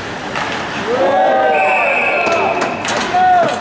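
Spectators cheer loudly after a goal.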